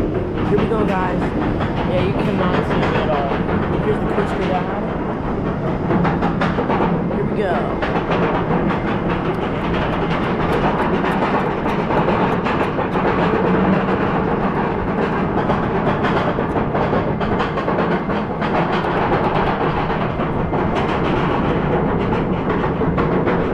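A fairground ride rumbles and rattles steadily.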